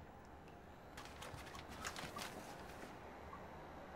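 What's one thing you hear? Water splashes softly in a bathtub.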